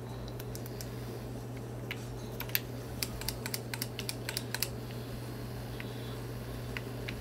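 Game gunfire crackles in quick, sharp bursts.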